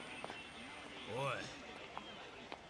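A man calls out briefly.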